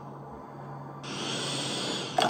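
A game's vacuum effect whooshes loudly through a small speaker.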